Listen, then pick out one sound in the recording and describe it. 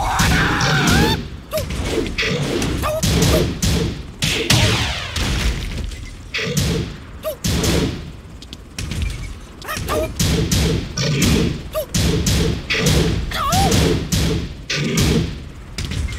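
Heavy punches and kicks land with sharp, loud thuds.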